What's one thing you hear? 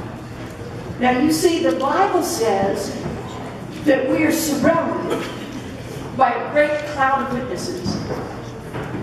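A middle-aged woman speaks with animation into a microphone in an echoing hall.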